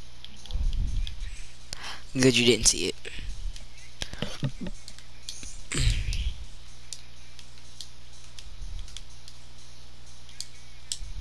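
Short menu clicks and whooshes sound as selections change.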